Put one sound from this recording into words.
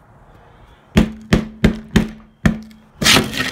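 Sharp, loud blows strike a shattered phone several times in quick succession.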